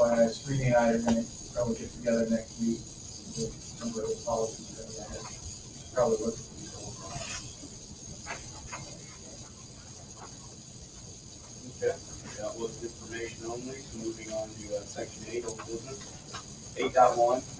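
A man speaks calmly into a microphone, heard from across a room.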